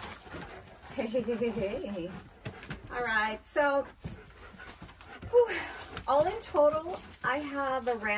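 A woman speaks cheerfully close by.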